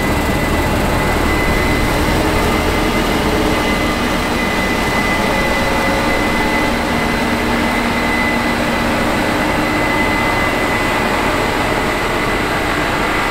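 A combine harvester's engine roars steadily up close.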